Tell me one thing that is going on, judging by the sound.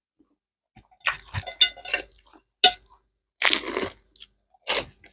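A man bites into crispy fried food with a loud crunch.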